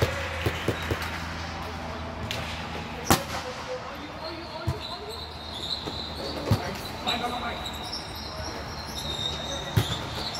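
Players call out to each other across the echoing hall.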